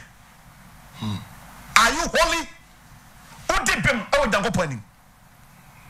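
A middle-aged man speaks with animation into a microphone, close by.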